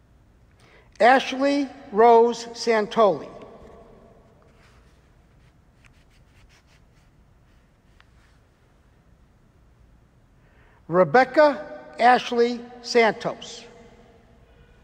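A man reads out names through a microphone in an echoing hall.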